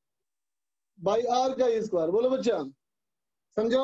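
A man speaks calmly, like a teacher explaining.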